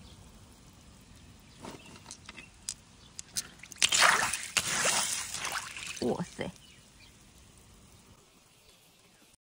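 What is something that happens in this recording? Shallow water laps gently over pebbles.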